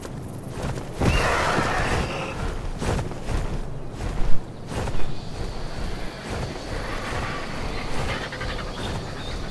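Large wings flap heavily close by.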